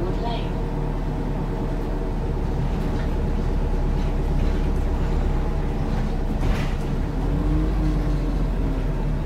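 A bus engine hums and drones steadily.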